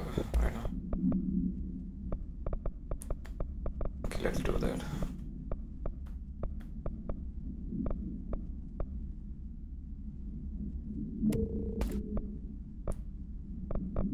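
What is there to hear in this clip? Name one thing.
Short soft clicks tick as menu selections change.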